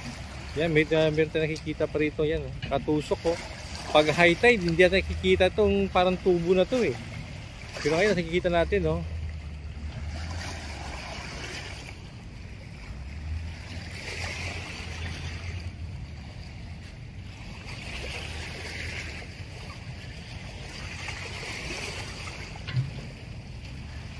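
Small waves lap and break gently against a rocky shore.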